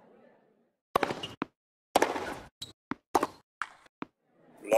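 A tennis ball is struck with sharp pops, back and forth.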